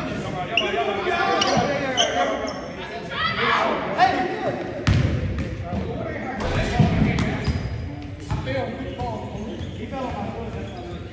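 Men talk and call out to each other across the court.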